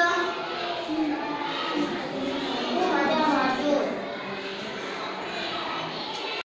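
A young boy recites clearly in a room with a slight echo.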